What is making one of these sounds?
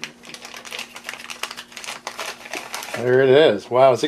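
A plastic bag crinkles and rustles as it is opened.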